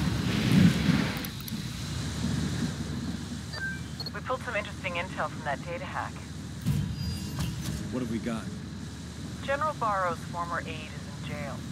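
An armoured truck's engine rumbles as it drives.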